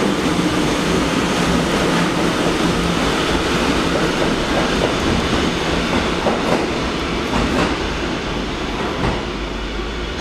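A subway train rumbles away and fades into the tunnel.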